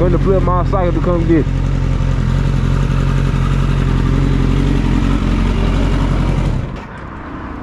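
A motorcycle engine idles with a steady low rumble, then cuts off.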